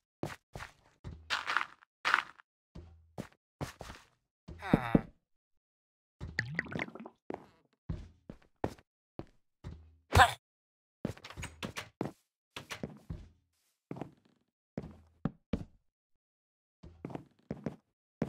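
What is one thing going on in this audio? Blocks are placed with short, soft thuds.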